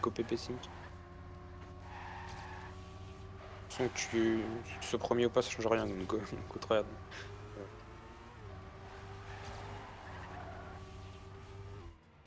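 A racing car engine hums at a steady high pitch, shifting up and down as the car speeds along.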